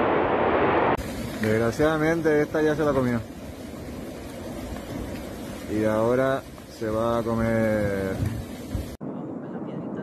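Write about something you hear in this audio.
Burning bushes crackle and hiss.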